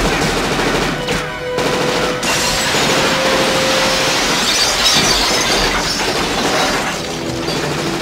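A rifle fires loud, rapid bursts.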